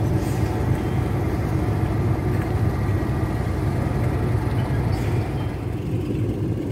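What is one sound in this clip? A diesel locomotive idles with a deep, steady rumble.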